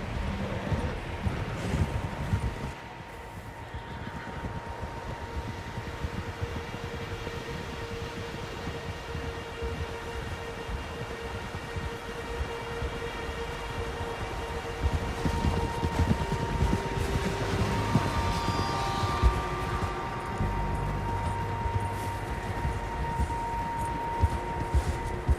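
Horses' hooves crunch through deep snow.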